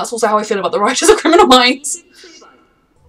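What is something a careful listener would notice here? A young woman speaks cheerfully and close to a microphone.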